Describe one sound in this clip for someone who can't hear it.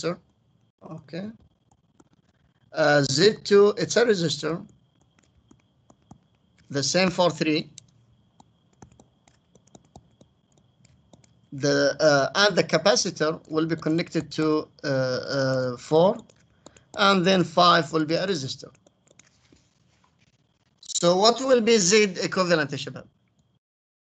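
A man explains calmly through a microphone, in short bursts with pauses.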